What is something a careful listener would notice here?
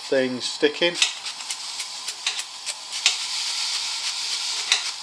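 Cooking oil sprays into an empty pan with short hisses.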